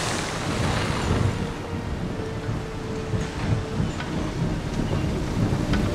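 Cannons boom in the distance.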